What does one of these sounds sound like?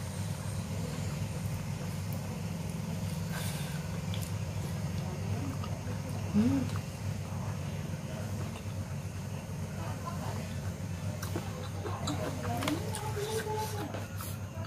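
Fingers scrape food on a plate.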